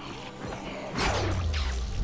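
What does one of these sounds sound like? A blade slashes and strikes flesh.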